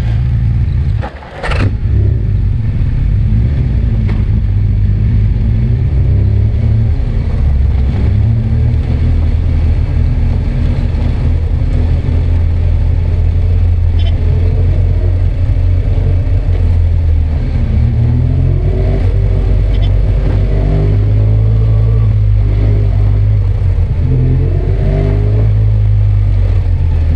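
Wind rumbles heavily against the microphone.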